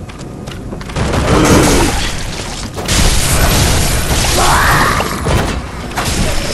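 A creature shrieks loudly.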